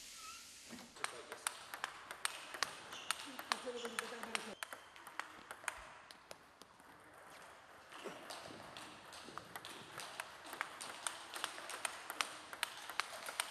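Ping pong balls click rapidly against paddles and a table.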